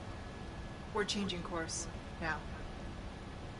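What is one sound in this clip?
A woman speaks briefly and firmly.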